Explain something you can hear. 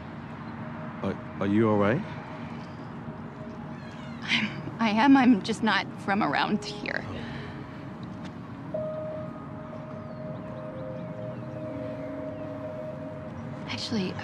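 A woman speaks with concern, close by.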